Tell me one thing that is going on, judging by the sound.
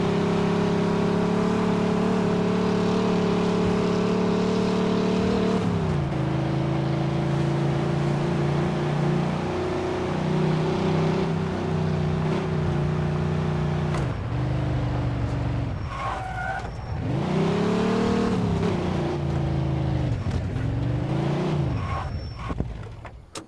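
A car engine roars steadily, then shifts gear and revs up and down.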